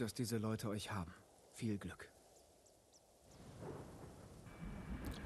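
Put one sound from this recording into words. Wind blows through tall grass.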